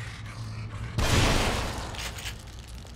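A gunshot booms.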